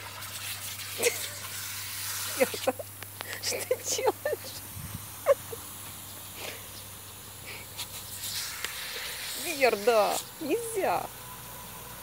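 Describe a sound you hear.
A dog snaps and splashes at a jet of water.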